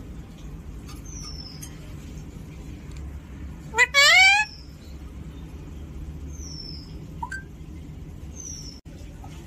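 A parrot chirps softly.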